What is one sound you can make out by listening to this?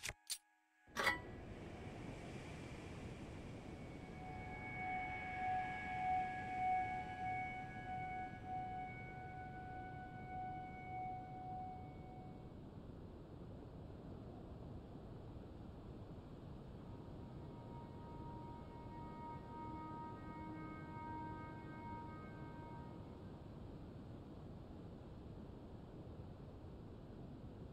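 Wind blows steadily across open ground.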